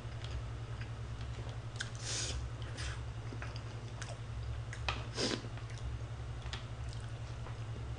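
Chopsticks clink against a pan.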